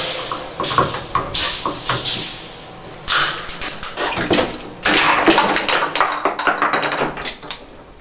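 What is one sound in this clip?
Pliers clink and scrape against a metal tap handle.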